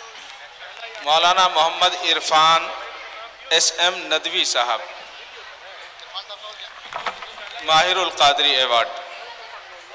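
A man speaks loudly through a loudspeaker in a large hall.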